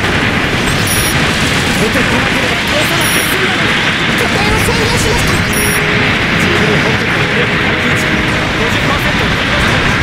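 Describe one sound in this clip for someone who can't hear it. Robot weapons fire in rapid bursts.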